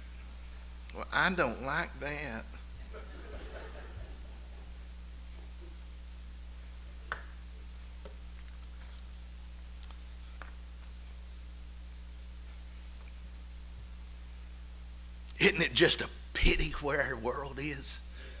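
A middle-aged man speaks quietly into a microphone.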